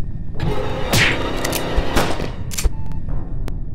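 A video game plays a harsh attack sound effect.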